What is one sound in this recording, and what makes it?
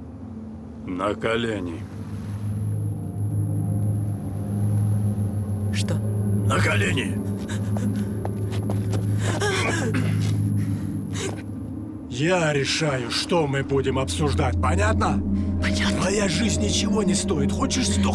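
A man speaks in a low, tense voice close by.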